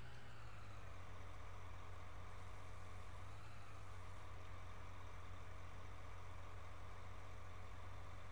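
A tractor engine idles with a steady low hum.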